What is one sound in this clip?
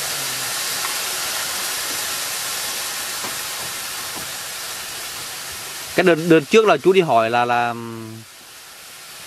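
Food sizzles and hisses in a hot wok.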